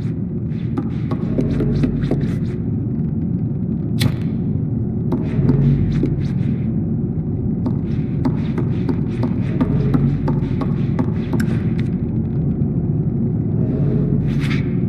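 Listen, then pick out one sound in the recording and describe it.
A child's small footsteps patter on wooden floorboards.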